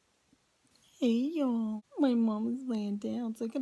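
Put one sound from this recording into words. A small dog howls and whines close by.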